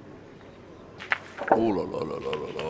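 Metal boules land on gravel and clack against each other.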